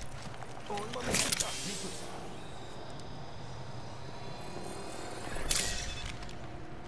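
A healing syringe whirs and clicks with a mechanical sound.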